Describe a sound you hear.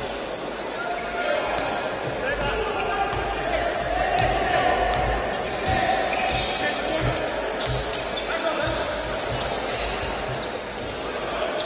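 Sneakers squeak on a court.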